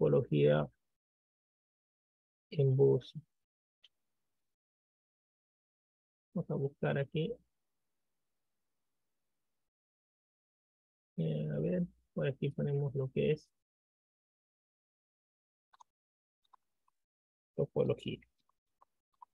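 A man speaks calmly in short bursts through a microphone.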